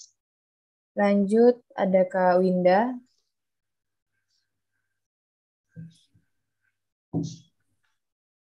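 A young woman speaks in a drawn-out voice through an online call.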